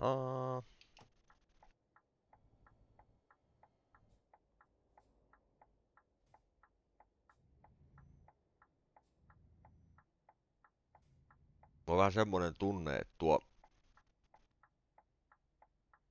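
A truck's turn signal ticks steadily.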